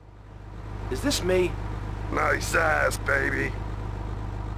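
A man speaks out loud in a teasing voice.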